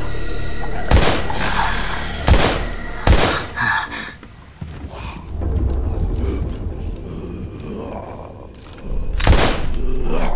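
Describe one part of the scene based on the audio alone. Gunshots ring out sharply, a few at a time.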